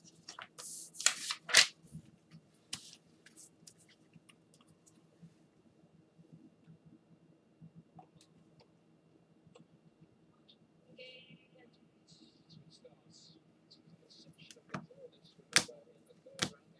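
A plastic card case clicks and rustles in hands.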